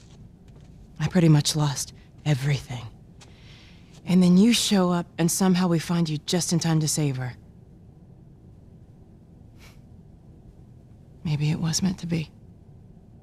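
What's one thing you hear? A young woman speaks quietly and sadly, close by.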